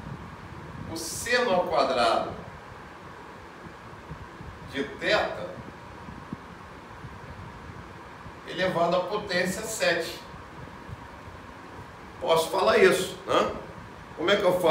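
A middle-aged man speaks calmly and clearly close by, in short phrases with pauses.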